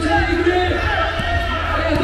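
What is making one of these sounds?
A basketball is dribbled on a hard court.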